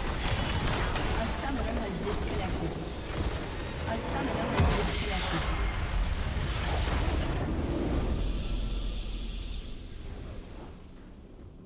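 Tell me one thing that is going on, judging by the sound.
Video game spell effects whoosh and crash loudly, with a large explosion rumbling.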